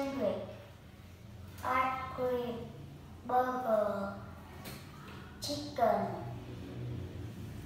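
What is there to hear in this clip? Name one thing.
A young child speaks words aloud clearly, close by.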